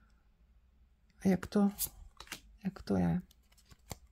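A card is slid and laid down on a table.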